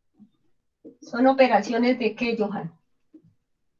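A young girl speaks close to a microphone.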